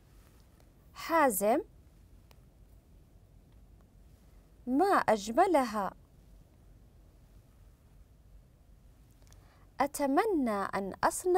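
A woman reads out short phrases clearly through a microphone, with pauses between them.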